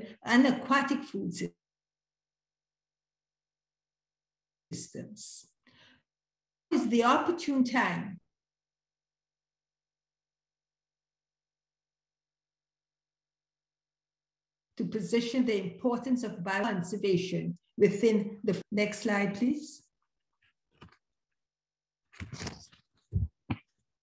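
A woman speaks calmly over an online call, with long pauses.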